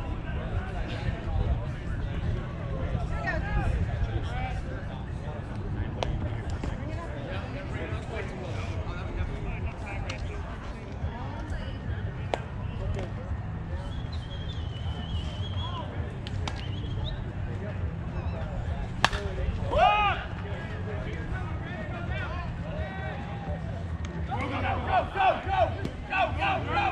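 Several men and women talk and call out outdoors.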